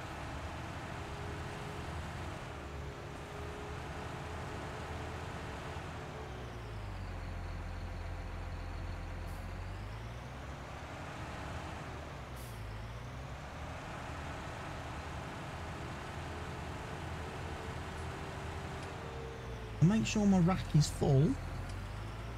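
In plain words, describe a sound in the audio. A tractor engine hums steadily, rising and falling in pitch as it drives and turns.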